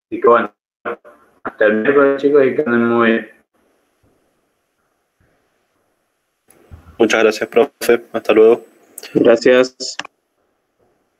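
A young man speaks over an online call.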